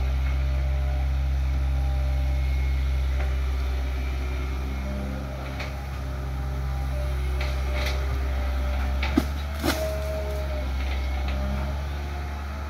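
An excavator's hydraulics whine as its arm swings.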